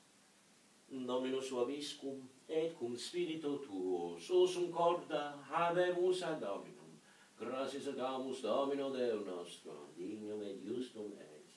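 A man chants in a sung voice.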